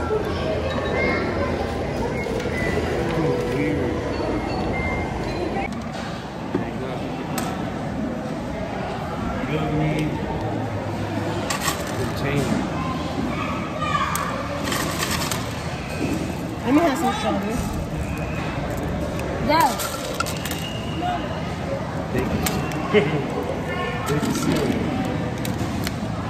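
Children and a man talk nearby.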